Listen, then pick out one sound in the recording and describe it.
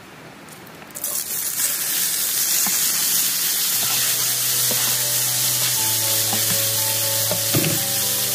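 Vegetables drop into a hot pan and sizzle loudly.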